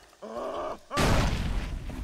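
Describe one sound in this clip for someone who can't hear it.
A rifle shot bangs loudly.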